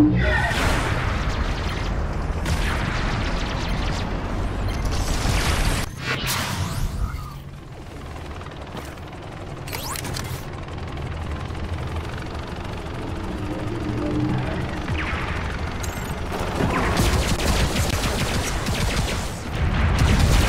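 A heavy robot's engine hums and rumbles steadily in a video game.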